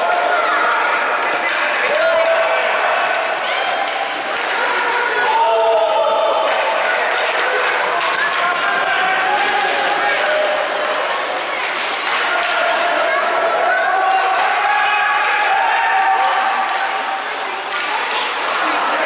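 Young players' skates scrape across ice.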